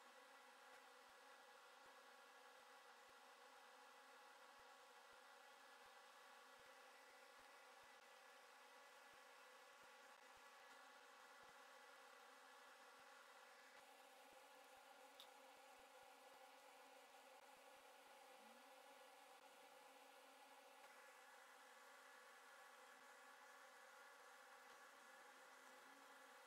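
A cotton swab scrubs softly across a circuit board.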